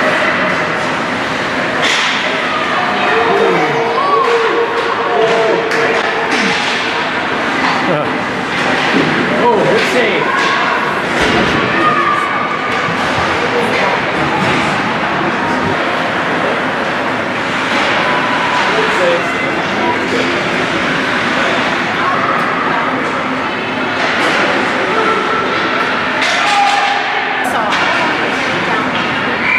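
A crowd of spectators chatters and calls out in a large echoing rink.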